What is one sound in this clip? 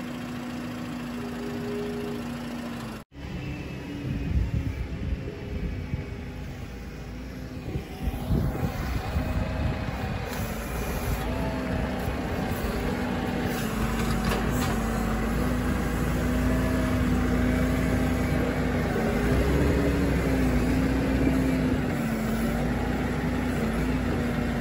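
A tractor engine rumbles steadily close by, rising and falling in pitch.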